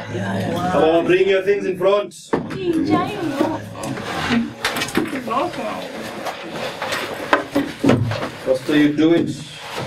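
Several men and women talk and laugh together close by.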